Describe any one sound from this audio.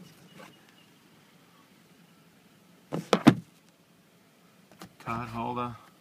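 A car sun visor snaps open and shut with plastic clicks.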